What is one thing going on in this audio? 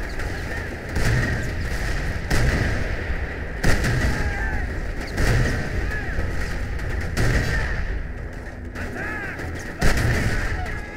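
Tank cannon shots boom, each followed by an explosion.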